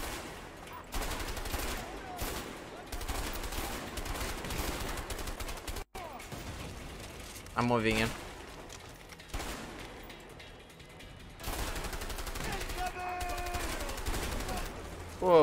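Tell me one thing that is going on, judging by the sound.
Guns fire in rapid bursts nearby.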